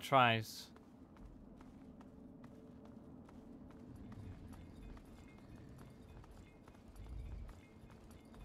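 Footsteps tread quickly on cracked pavement.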